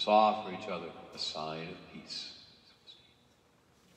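An elderly man chants a few words aloud in a large echoing hall.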